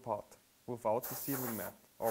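Compressed air blows out of a hose with a loud hiss.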